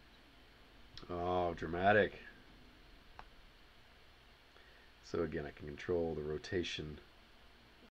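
A man speaks calmly and closely into a microphone, in short phrases.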